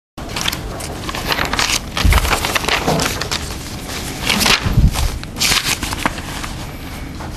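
Sheets of paper rustle and crinkle close by as they are shuffled and turned.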